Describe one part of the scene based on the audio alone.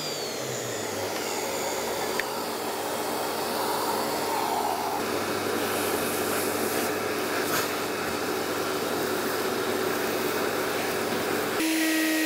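A vacuum hose roars steadily as it sucks up wood shavings.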